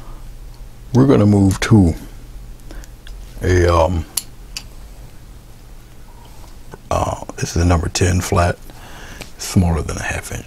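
A man speaks calmly and close, in short phrases with pauses.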